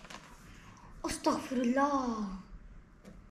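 A young boy speaks loudly with animation close by.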